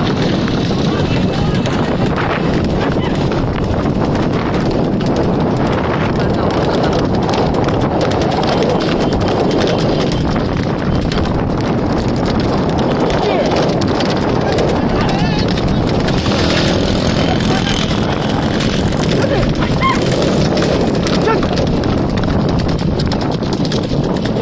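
Cart wheels rumble and rattle on the road.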